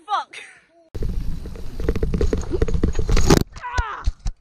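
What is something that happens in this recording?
A mountain bike's tyres rumble and crunch over a dirt trail.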